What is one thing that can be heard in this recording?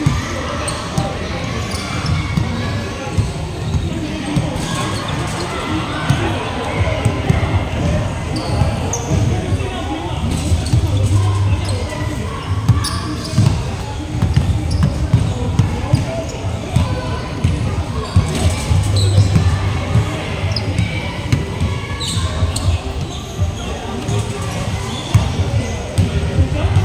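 Young men chatter and call out across the hall.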